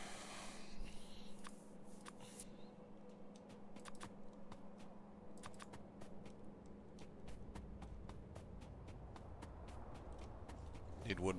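Soft clicks tick in quick succession.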